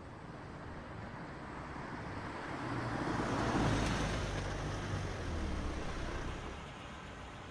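A car drives slowly past.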